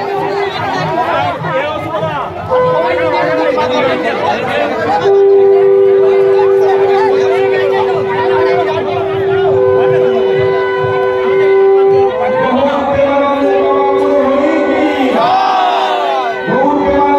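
A crowd of people talks and calls out nearby.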